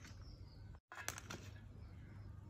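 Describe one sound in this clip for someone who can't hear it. Fingers squeeze and mix a wet paste in a metal bowl.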